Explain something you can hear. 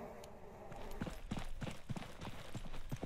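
Footsteps thud on hard ground at a steady walking pace.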